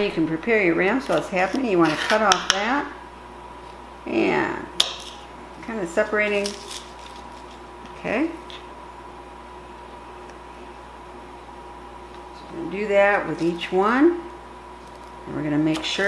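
A knife taps and scrapes on a plastic cutting board.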